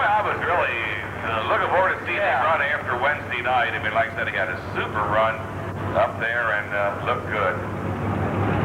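A man talks loudly with animation nearby.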